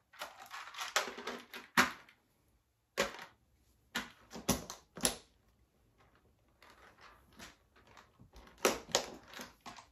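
Plastic toys clatter and rattle as they are dropped into a container.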